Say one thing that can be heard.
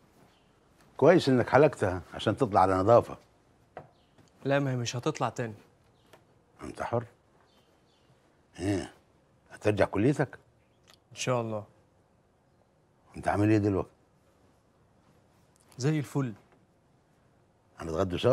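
A middle-aged man speaks urgently, close by.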